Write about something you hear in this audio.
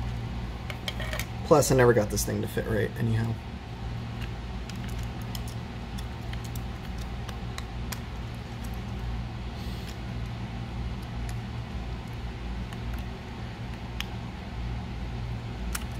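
Small plastic parts click and tap softly as fingers handle them.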